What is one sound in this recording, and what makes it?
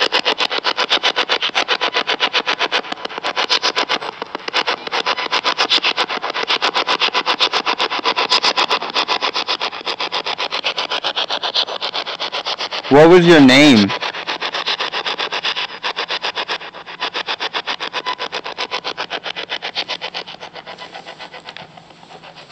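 A spirit box radio sweeps rapidly through stations in choppy bursts of static.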